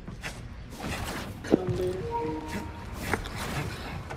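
A body lands with a thud after a leap.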